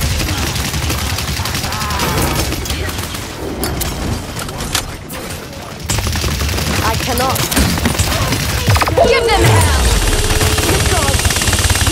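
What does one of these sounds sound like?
Game explosions and magic blasts boom.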